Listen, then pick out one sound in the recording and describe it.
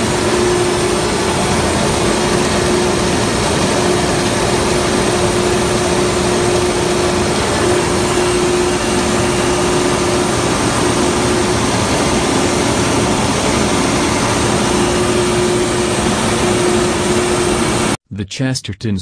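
A pump runs with a loud, steady mechanical roar and hum.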